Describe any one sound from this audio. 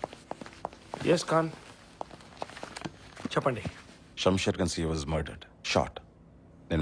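A man speaks in a low, serious voice close by.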